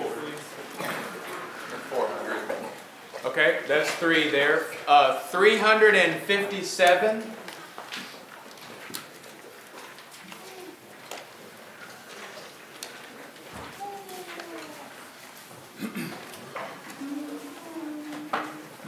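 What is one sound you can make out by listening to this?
A man speaks loudly in a room that echoes.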